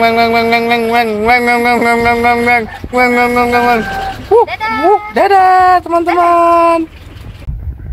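A man sings loudly close to the microphone.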